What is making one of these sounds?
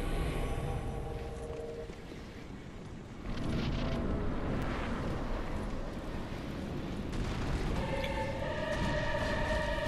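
Magic crackles and hums on a blade.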